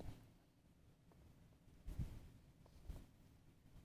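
A small dog chews and gnaws.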